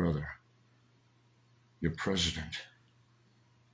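A middle-aged man speaks briefly and calmly, close to a microphone.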